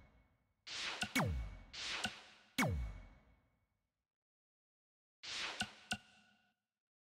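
Game menu whooshes sound as selections change.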